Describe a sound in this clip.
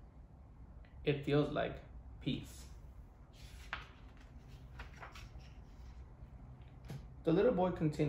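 A young man reads aloud calmly, close by.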